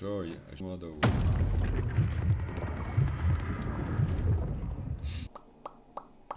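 Video game effects rumble and crash.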